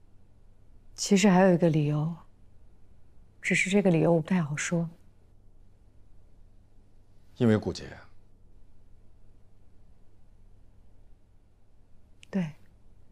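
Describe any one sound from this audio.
A young woman speaks close by calmly and firmly.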